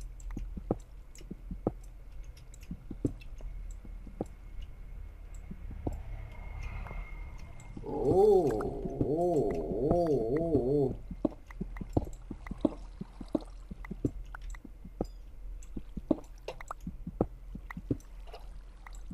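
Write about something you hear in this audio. A pickaxe taps and chips at stone in quick, repeated knocks.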